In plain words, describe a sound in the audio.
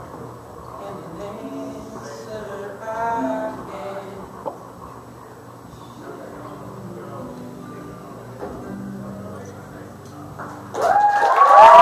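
A band plays a quiet acoustic tune with upright bass and guitar in a large room.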